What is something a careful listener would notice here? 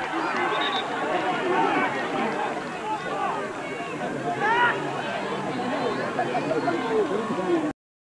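A crowd of spectators shouts and cheers close by.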